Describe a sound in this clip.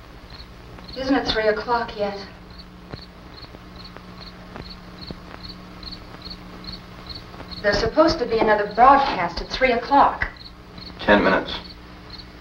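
A woman speaks calmly from across a room.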